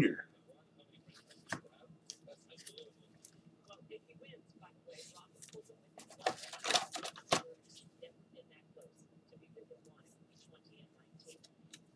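Plastic card sleeves rustle and click as they are handled.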